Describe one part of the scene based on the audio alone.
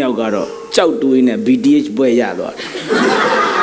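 A man speaks with animation in a large echoing room.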